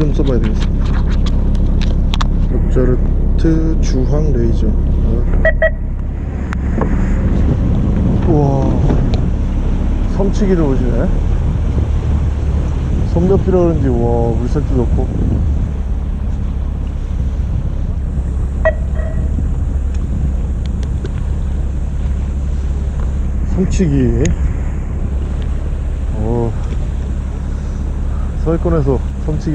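A boat engine hums steadily.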